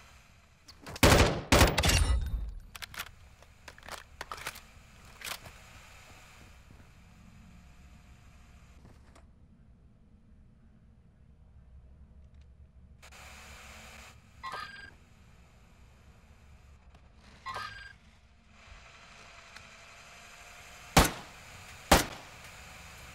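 Gunshots fire in short, loud bursts.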